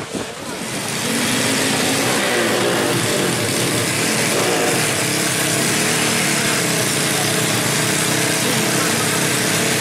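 A motorcycle engine runs loudly and steadily close by.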